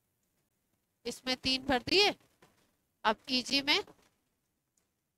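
A woman speaks calmly into a headset microphone, close by.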